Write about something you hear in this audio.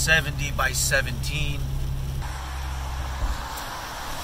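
A car engine hums steadily inside the car.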